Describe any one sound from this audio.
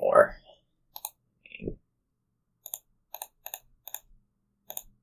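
Playing cards flick and tap with short, soft clicks.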